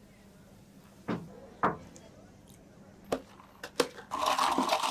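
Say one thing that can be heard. Plastic lids snap onto cups.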